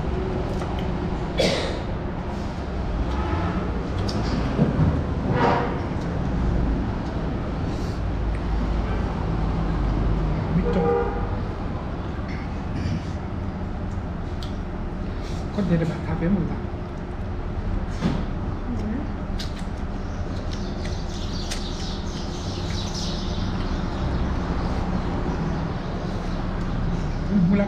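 Hands squelch through rice and food on metal plates.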